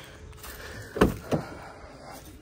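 A car door handle clicks and the door opens.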